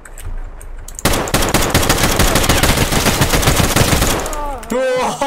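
A rifle fires rapid, loud bursts at close range.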